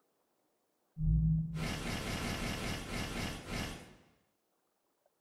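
A game menu sound plays as a pop-up opens.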